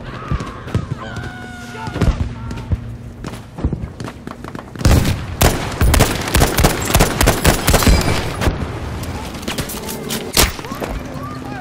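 Distant explosions boom and rumble.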